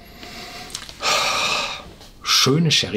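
An older man sniffs deeply.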